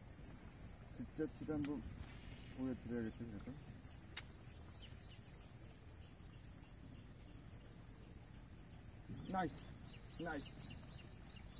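A man talks close by, in short bursts.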